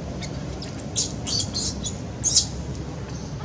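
A baby monkey squeals shrilly in short bursts.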